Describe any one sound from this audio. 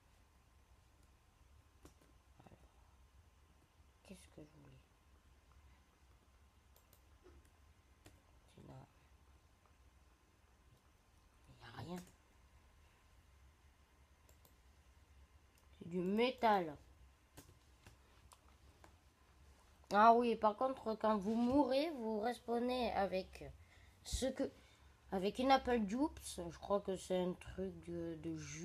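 Keys on a laptop click softly.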